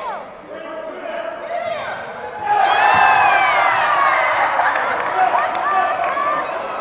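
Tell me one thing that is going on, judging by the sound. Young children cheer and shout excitedly in a large echoing gym.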